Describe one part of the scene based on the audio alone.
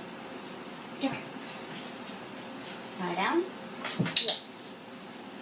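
A young woman speaks briefly to a dog, close by.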